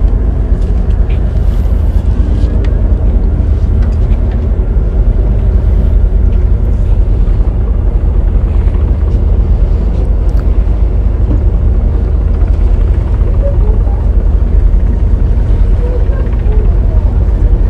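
Water washes against the hull of a moving boat.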